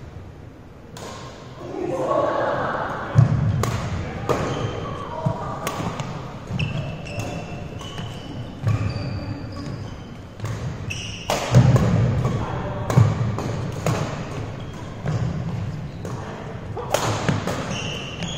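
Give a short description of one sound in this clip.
Shuttlecocks are struck with sharp pops of badminton rackets in a large echoing hall.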